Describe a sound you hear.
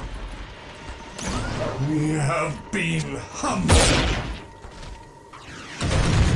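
Blades clash and thud in a scuffle.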